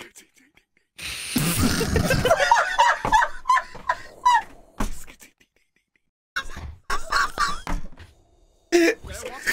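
A man laughs loudly and heartily into a microphone.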